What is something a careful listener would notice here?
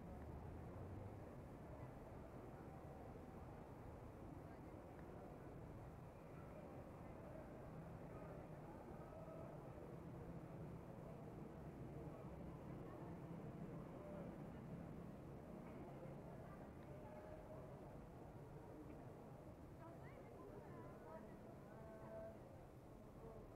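Distant city traffic hums steadily outdoors.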